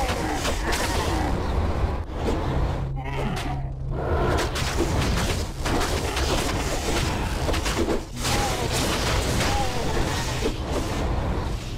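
Fiery spell blasts crackle and burst in rapid succession.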